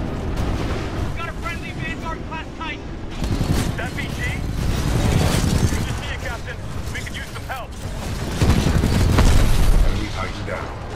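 Explosions boom and rumble.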